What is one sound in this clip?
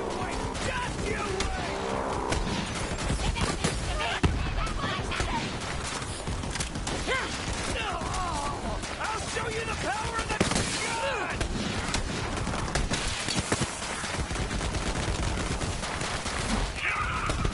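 Gunshots crack in quick, sharp bursts.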